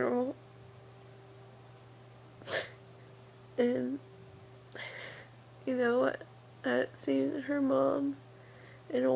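A young woman speaks quietly and close up, in short bursts with pauses.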